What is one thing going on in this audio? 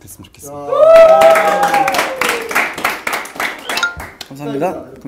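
A group of young men clap their hands.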